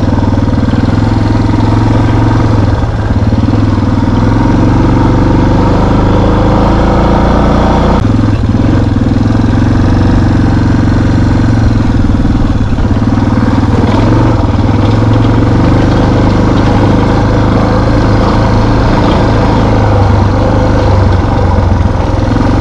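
A motorbike engine drones steadily at speed.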